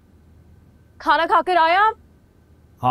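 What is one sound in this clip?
A young woman speaks briefly in a high voice, close by.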